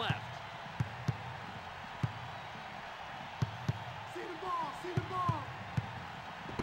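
A basketball bounces on a hardwood court in dribbles.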